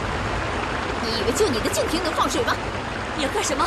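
A young woman speaks sharply and close.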